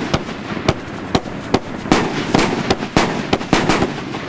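Rockets whoosh as they shoot upward.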